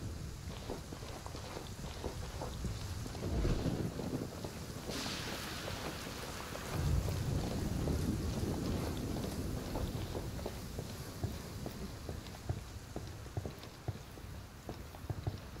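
Boots tread on the ground as a soldier walks.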